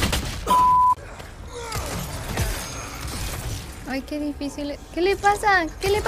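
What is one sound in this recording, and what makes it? A young woman talks and exclaims into a microphone.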